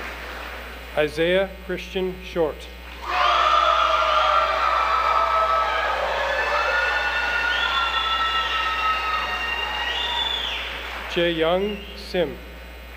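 A man reads out names over a loudspeaker in a large echoing hall.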